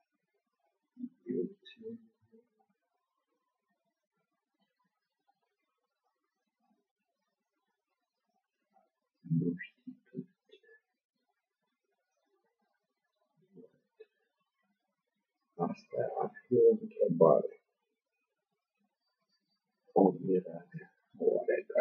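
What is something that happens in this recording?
A man speaks calmly close to the microphone, in short bursts with pauses.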